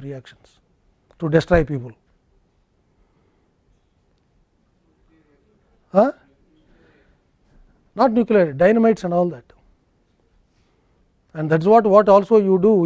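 A middle-aged man speaks calmly through a clip-on microphone, pausing between phrases.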